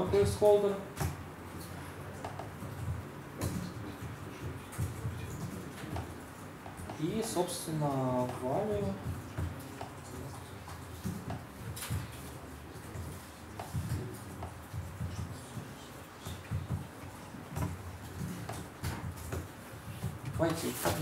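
Laptop keys click as a young man types.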